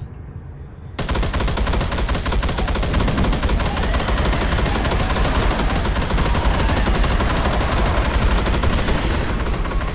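A heavy gun fires in rapid, continuous bursts.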